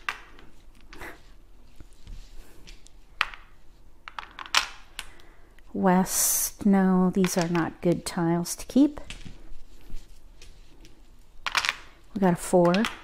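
Plastic tiles click and clack against each other on a table.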